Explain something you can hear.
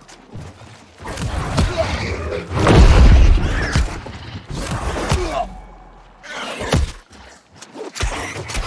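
Sword strikes slash and clang in quick combat.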